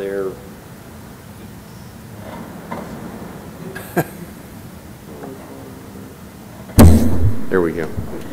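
A man speaks calmly into a microphone in a room with some echo.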